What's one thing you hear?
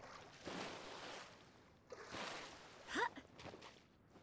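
Water splashes as a game character swims.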